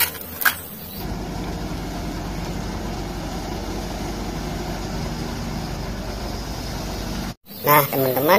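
An excavator's diesel engine rumbles steadily.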